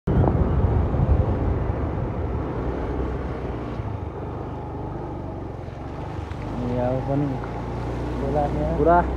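A motorbike engine hums steadily at low speed.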